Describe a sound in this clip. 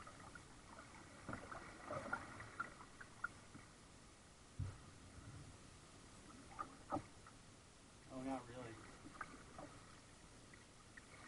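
Small waves lap and splash against a kayak's hull on calm water.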